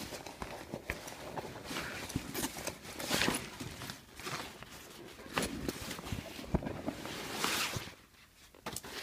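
A fabric bag rustles and crinkles as hands handle it up close.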